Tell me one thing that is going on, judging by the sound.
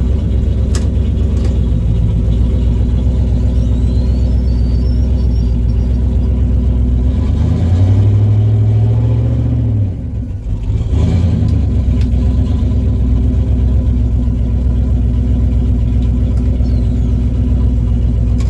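A loud car engine rumbles at idle with a rough, lopey beat.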